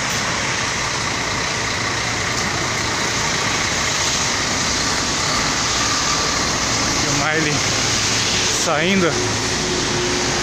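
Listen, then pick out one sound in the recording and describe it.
A large bus engine rumbles nearby.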